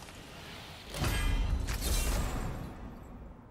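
A bright shimmering chime rings out.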